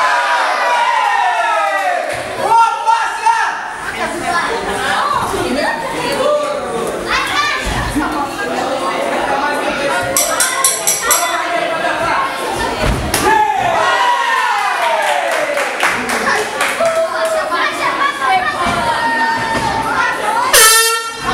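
A crowd shouts and cheers.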